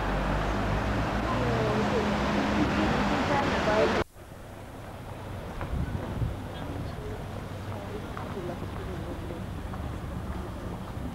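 Traffic hums steadily outdoors.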